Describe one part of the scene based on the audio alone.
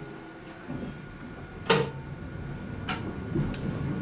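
A train rumbles and clatters as it starts to pull away.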